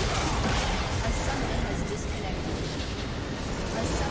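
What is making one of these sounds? A large structure explodes with a booming blast.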